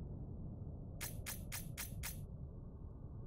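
Rapid electronic clicks tick as points tally up.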